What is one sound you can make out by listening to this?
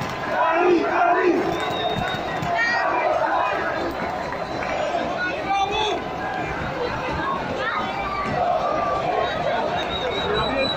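A large crowd chants and shouts loudly, all around.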